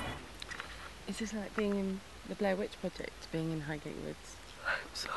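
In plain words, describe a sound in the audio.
A woman talks softly close to the microphone.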